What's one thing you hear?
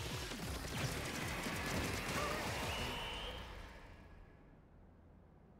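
Electronic game sound effects splatter and whoosh busily, then fade away.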